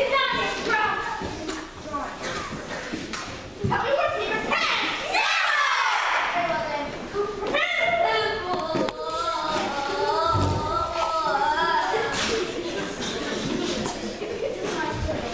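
Children's voices speak and call out on a stage, in a hall with some echo.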